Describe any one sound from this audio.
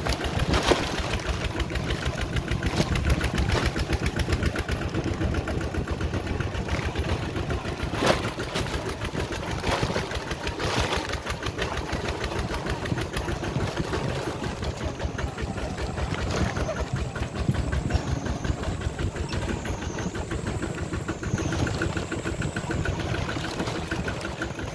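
A vehicle engine rumbles steadily on a bumpy dirt track.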